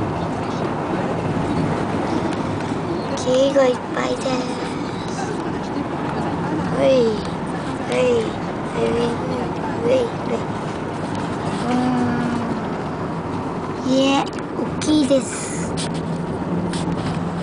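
A car drives along steadily with a low rumble of road noise from inside.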